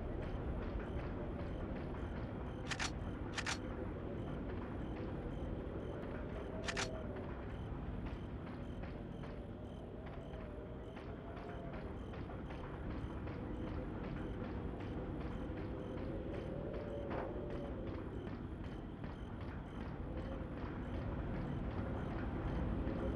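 Footsteps thud steadily on stone and wooden stairs.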